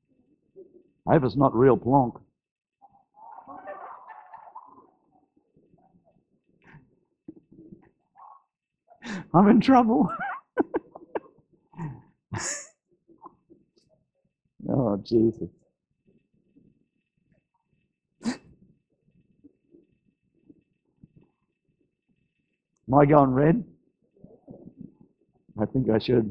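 An elderly man speaks with animation into a microphone, in short bursts with pauses.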